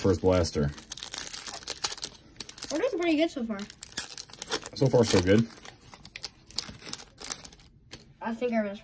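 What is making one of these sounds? A foil wrapper crinkles and rustles as hands tear it open.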